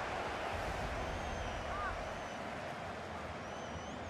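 A ball is struck hard with a thud.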